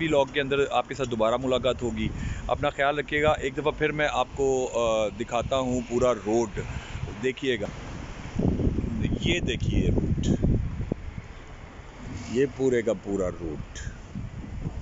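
A man talks calmly and close to a handheld microphone, outdoors.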